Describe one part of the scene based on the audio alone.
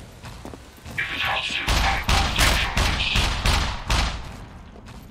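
Footsteps ring louder on a hard metal floor.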